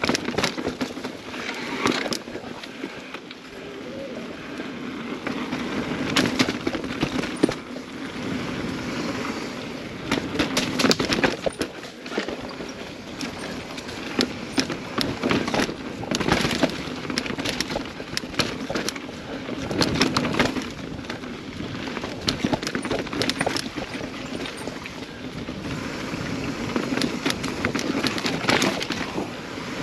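Mountain bike tyres roll and crunch along a dirt trail.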